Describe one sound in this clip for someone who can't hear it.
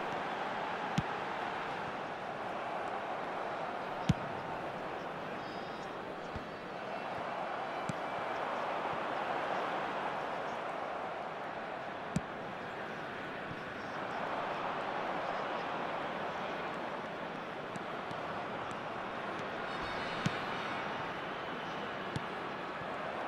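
A football is kicked with sharp thuds now and then.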